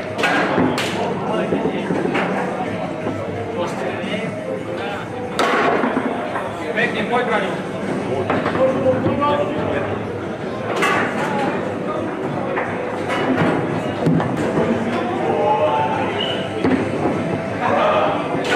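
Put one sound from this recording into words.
Foosball rods rattle and the figures knock a ball against the table.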